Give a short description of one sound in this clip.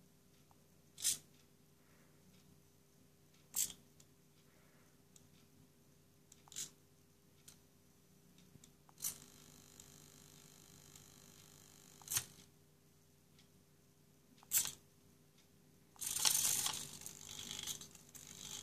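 Small servo motors whir in short bursts as a little robot shifts its legs.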